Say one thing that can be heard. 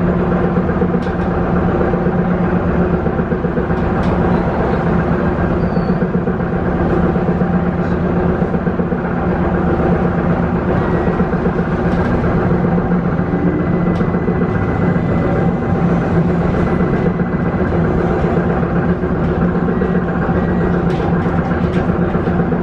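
A vehicle engine hums steadily from inside a moving vehicle.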